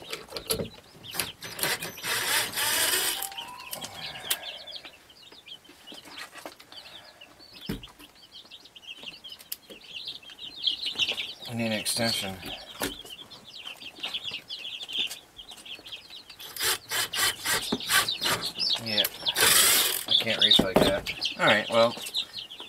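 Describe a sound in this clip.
Wooden pieces knock and clatter.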